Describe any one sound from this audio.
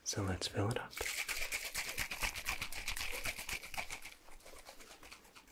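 A plastic bottle taps and rustles rapidly against a microphone.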